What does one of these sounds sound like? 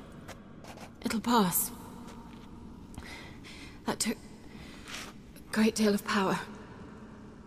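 A young woman speaks softly and haltingly, close by.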